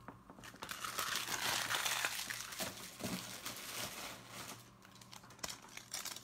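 Card packs slide and tap against each other on a table.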